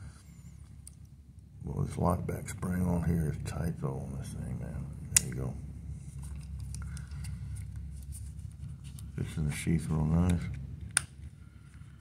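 A small metal pocketknife clicks as it is handled.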